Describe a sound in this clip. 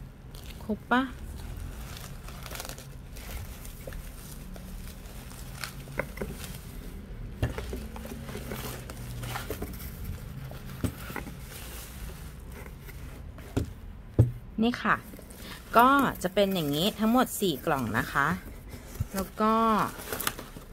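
Plastic bubble wrap crinkles and rustles under handling.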